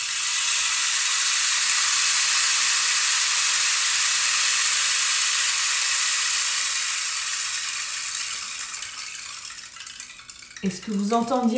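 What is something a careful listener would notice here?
Beads trickle down inside a rain stick with a steady hissing patter that slowly fades.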